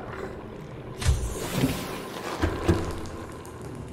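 A metal hatch opens with a loud hiss and clank.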